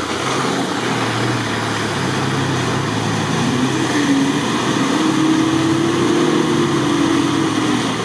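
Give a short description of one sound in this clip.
Muddy water splashes and sloshes under tyres.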